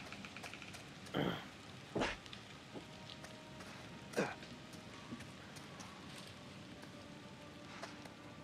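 Footsteps tread on a dirt path.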